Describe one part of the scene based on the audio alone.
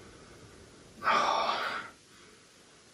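A young woman coughs into her arm.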